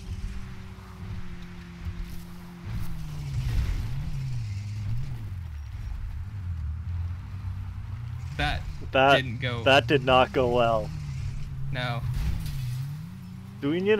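Tyres rumble over rough ground and grass.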